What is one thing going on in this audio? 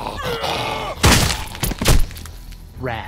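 A weapon strikes with heavy thuds.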